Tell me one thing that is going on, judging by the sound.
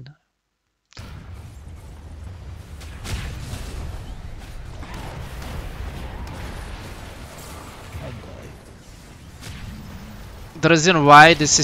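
Battle sound effects clash and boom in a game fight.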